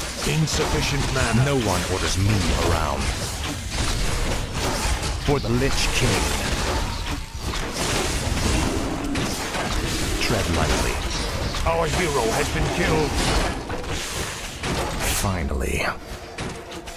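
Magic spells crackle and burst in a busy battle.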